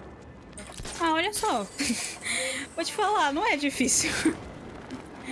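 A young person laughs into a close microphone.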